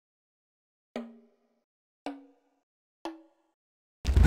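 Short countdown beeps sound in the quiet.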